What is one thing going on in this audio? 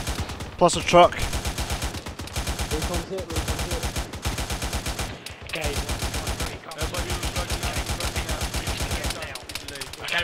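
A machine gun fires in rapid bursts, close by.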